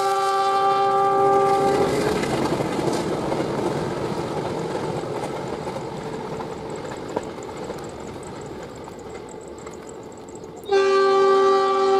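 A passenger train rumbles along the rails and slowly fades into the distance.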